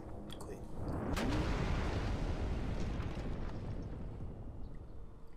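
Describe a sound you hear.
A loud rumbling crash.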